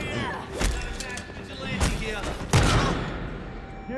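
Punches land with heavy thuds in a brawl.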